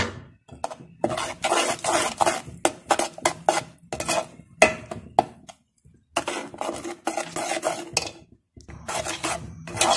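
A spoon scrapes and stirs in a metal pot.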